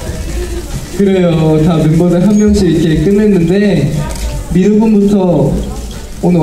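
A young man talks calmly into a microphone over loudspeakers.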